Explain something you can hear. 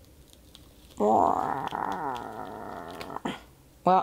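A young woman groans in a long strained voice.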